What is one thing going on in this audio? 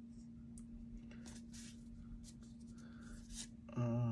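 A foil card pack crinkles.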